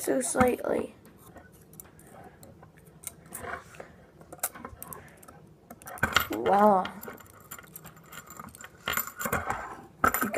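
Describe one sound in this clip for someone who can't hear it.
Small clicks and taps come from a ring being handled.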